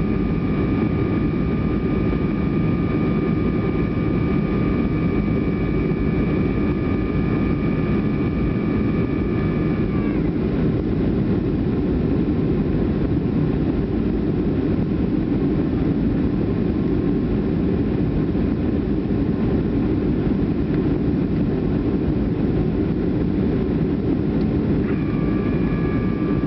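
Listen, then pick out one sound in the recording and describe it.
Jet engines roar steadily in a loud, deep drone inside an airliner cabin in flight.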